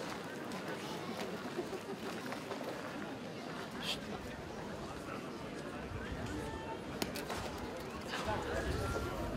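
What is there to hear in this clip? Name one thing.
A large outdoor crowd murmurs and chatters steadily.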